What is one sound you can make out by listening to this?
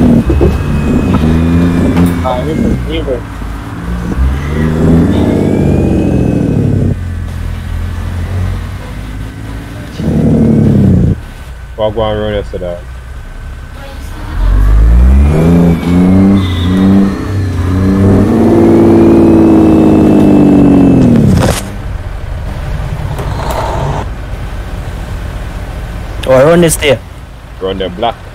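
A truck engine rumbles steadily while driving.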